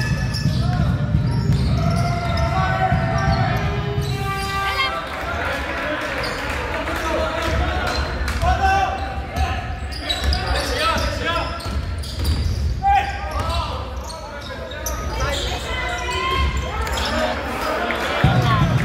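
A crowd of spectators murmurs and calls out in the background.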